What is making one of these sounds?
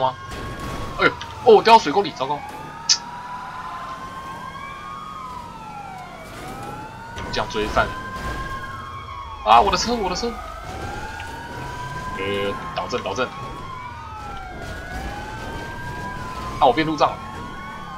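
A car crashes and scrapes over rough ground.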